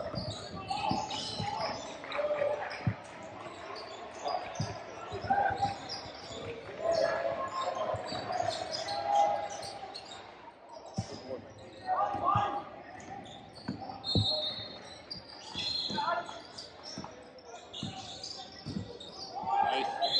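A basketball bounces on a hardwood court with echoing thuds.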